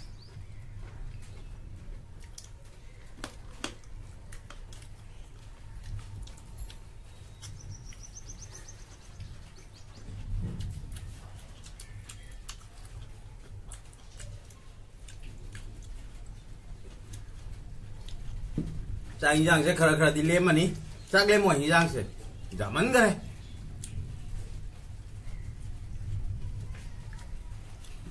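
Hands squish and mix food with soft, wet sounds.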